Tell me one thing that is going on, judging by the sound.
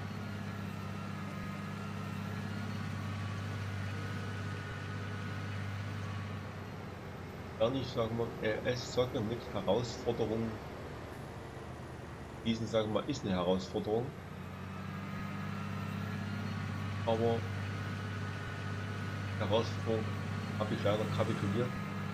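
A tractor engine drones steadily at a low pitch.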